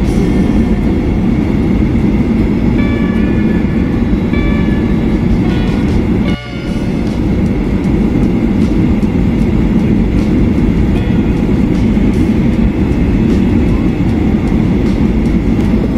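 Jet engines roar steadily inside an airplane cabin.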